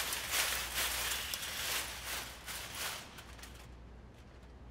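Metal coins clink and rattle loudly.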